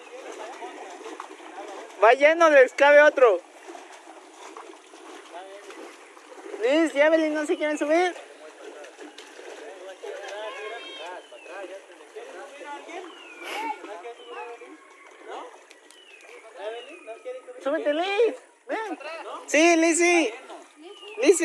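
Water gurgles and sloshes around a small boat.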